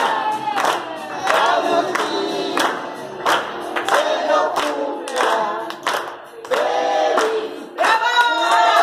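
A group of people clap their hands in a steady rhythm.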